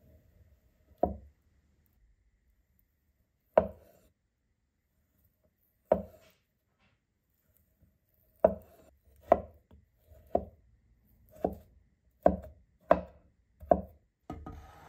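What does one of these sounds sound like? A cleaver chops through a potato and thuds on a wooden board.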